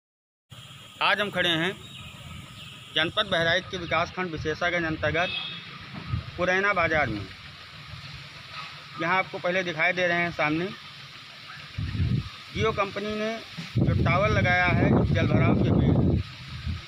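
A middle-aged man talks into a handheld microphone outdoors, speaking steadily like a reporter.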